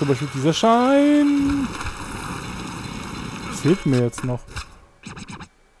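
Skateboard wheels roll over hard ground.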